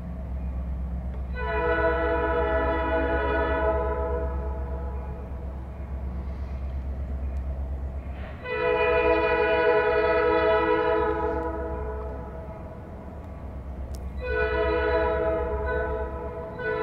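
A locomotive engine rumbles low and steady in the distance.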